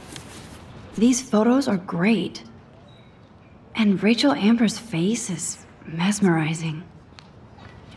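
A young woman speaks calmly and thoughtfully, close up.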